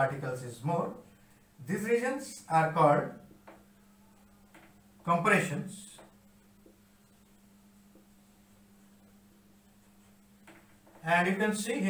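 A man speaks calmly and explains, close by.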